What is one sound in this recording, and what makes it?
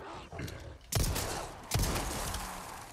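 A pistol fires two loud shots.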